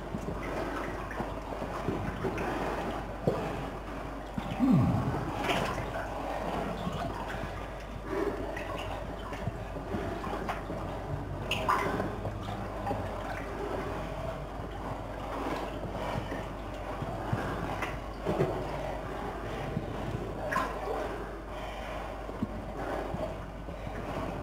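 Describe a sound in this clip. A person wades through water, splashing steadily in an echoing tunnel.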